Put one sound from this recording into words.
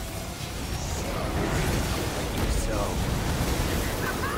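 Magic blasts explode with crackling bursts.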